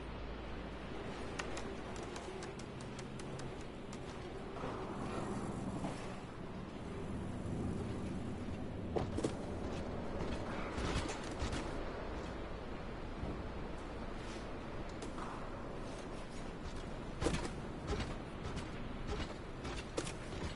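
A cat's paws patter and thud softly as it jumps and lands on metal pipes and roofs.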